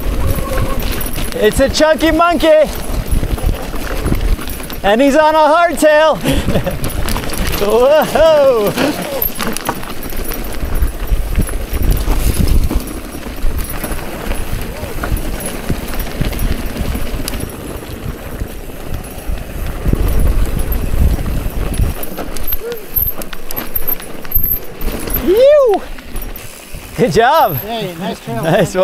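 Bicycle tyres rumble and rattle over a rough dirt trail.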